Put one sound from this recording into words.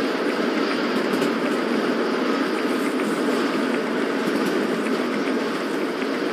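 A steam locomotive rumbles steadily along the track.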